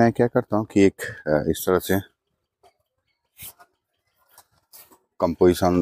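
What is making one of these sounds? A piece of card rustles as it is picked up and handled.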